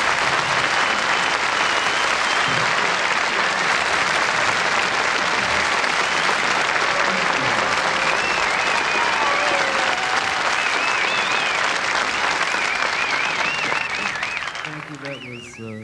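A large audience applauds loudly in a hall.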